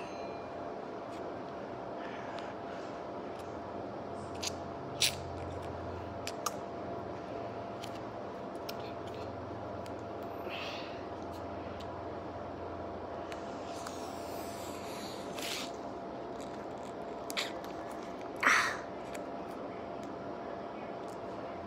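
A plastic candy wrapper crinkles.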